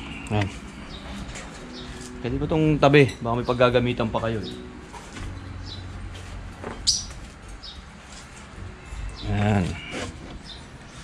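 A man talks animatedly close by.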